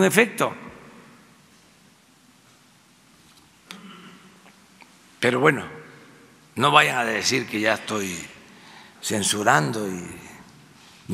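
An elderly man speaks slowly and deliberately into a microphone, with pauses between phrases.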